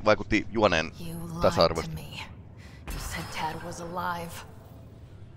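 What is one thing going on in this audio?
A young woman speaks calmly and warmly.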